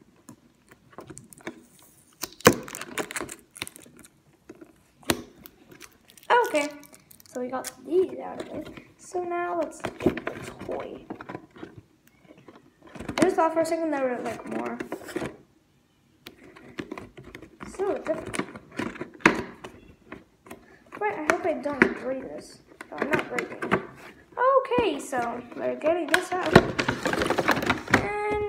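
A cardboard box rustles and knocks as hands turn it over.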